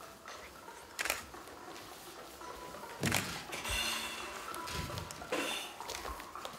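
Bodies thump and slide on a wooden floor in a large echoing room.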